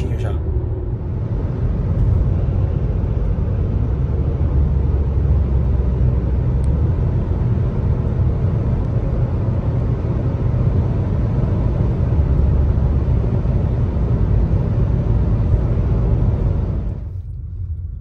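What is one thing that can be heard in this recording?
Tyres rumble steadily on asphalt, heard from inside a car.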